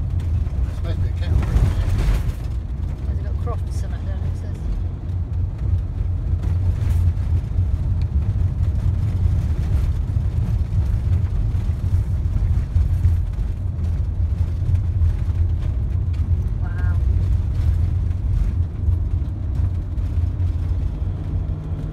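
Tyres roll over a paved road.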